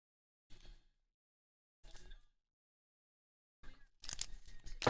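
Plastic card case clicks and taps as hands handle it.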